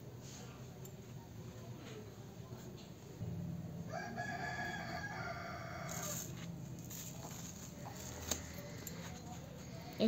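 Scissors snip into soft foam.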